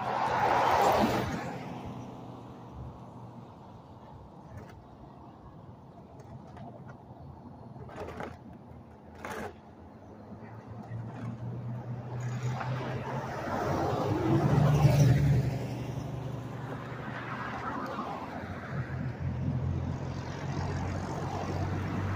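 Cars and trucks drive past on a nearby road.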